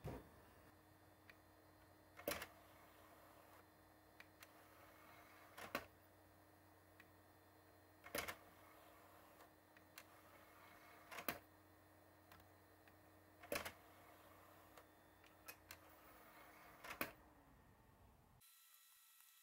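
A console hums and whirs steadily.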